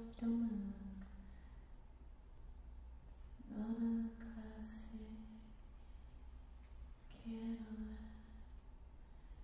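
A woman sings slow, held notes into a microphone.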